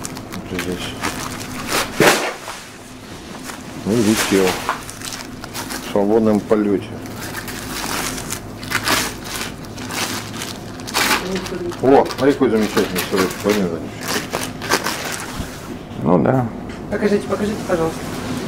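A paper wrapper rustles and crinkles.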